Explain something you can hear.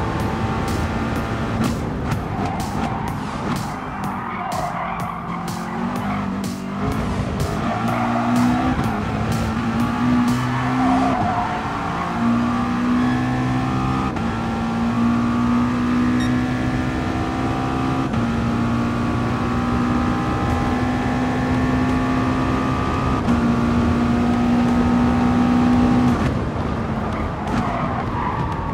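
A racing car engine roars at high revs, rising in pitch and dropping with each gear change.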